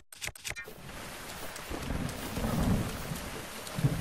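Footsteps rustle through wet grass.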